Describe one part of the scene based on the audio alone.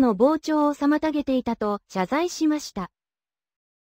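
A young woman speaks clearly and evenly through a microphone.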